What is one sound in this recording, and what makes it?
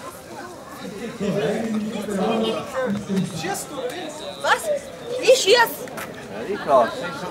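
A woman speaks close by.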